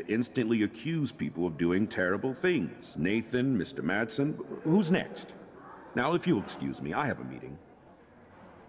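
A man speaks calmly and sternly.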